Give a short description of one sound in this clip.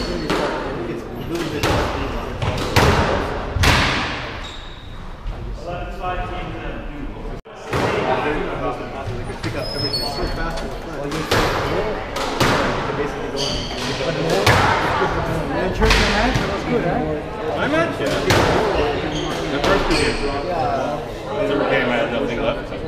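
A squash ball smacks hard off rackets and walls in an echoing court.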